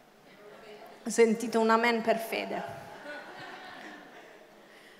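A young woman speaks with animation into a microphone, heard over loudspeakers in a large echoing hall.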